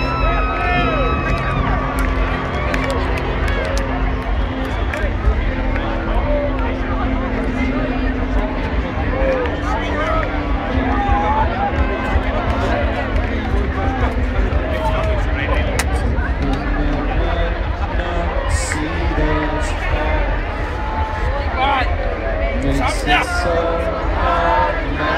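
Loud live music plays over big outdoor speakers.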